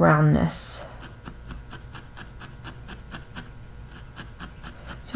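A felting needle jabs repeatedly into wool with soft ticks.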